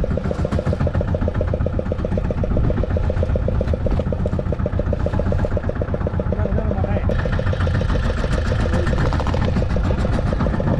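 A boat engine chugs steadily and loudly close by.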